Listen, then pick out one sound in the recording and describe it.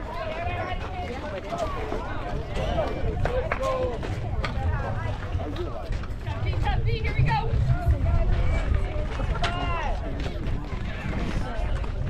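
Several girls and women chatter and shout nearby, outdoors.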